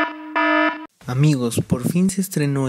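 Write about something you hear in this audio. A man shouts forcefully.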